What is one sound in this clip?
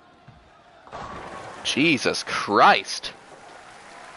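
Bowling pins crash and clatter as they are struck.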